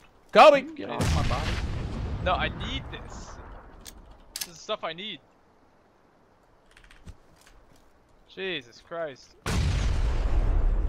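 A grenade explodes with a deep boom.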